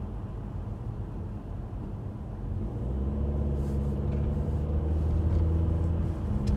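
A car engine hums steadily from inside the car and grows louder as it speeds up.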